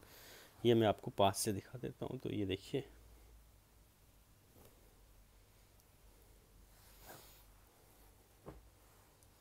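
Silk fabric rustles softly as hands handle it.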